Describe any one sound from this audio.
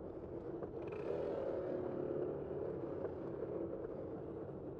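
A van drives past close by.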